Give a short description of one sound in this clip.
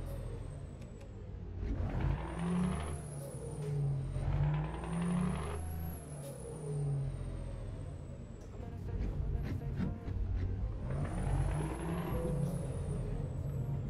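A truck engine rumbles steadily and revs up and down.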